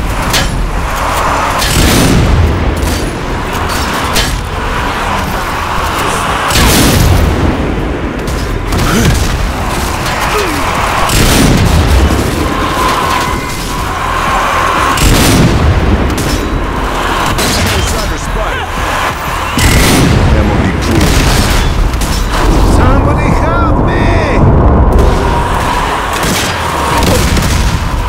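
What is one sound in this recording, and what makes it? Gunshots boom repeatedly.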